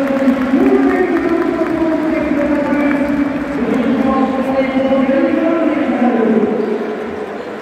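A large crowd chants loudly in unison in a big echoing arena.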